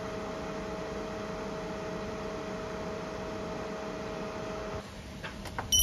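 A portable power unit hums with a steady tone.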